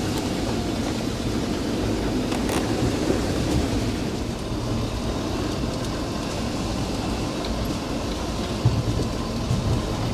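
A vehicle engine rumbles low and steady.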